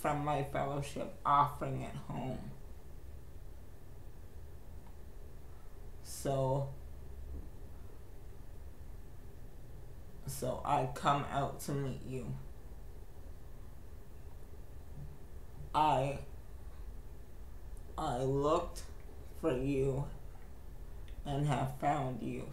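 A young man speaks slowly in short bursts, close to the microphone.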